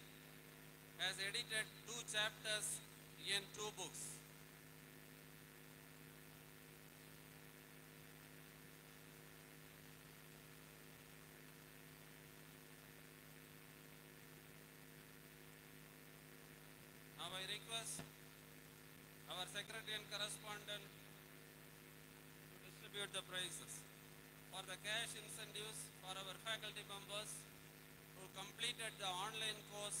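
A man announces through a microphone over loudspeakers, in short bursts.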